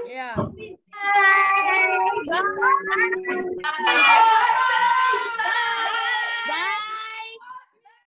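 Young girls shout and cheer excitedly over an online call.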